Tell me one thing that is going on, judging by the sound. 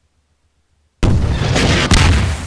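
A rocket launcher fires with a loud, roaring blast.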